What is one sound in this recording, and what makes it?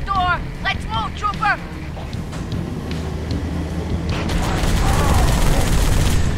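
A mounted gun fires in rapid bursts.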